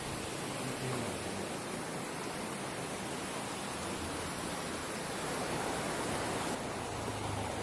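Water splashes and gurgles as it pours into a pool.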